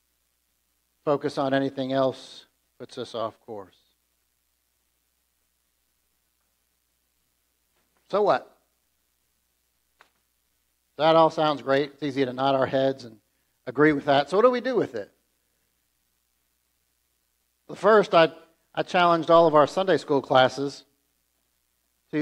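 A middle-aged man speaks with animation through a microphone, pausing between phrases.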